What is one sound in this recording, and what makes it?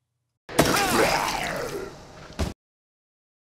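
A monster snarls and growls loudly during an attack.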